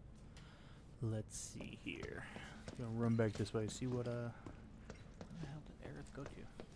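Footsteps crunch on rubble.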